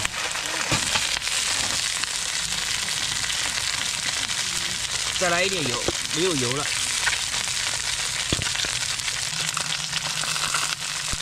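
Oil sizzles and crackles loudly as a fish fries.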